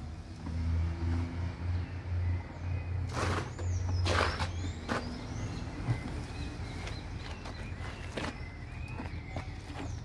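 A horse munches and crunches on leafy branches close by.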